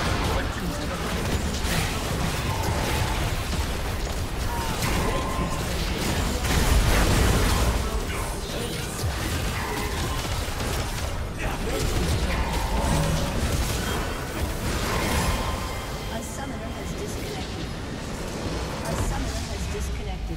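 Video game spells and weapon hits crash and crackle in a busy fight.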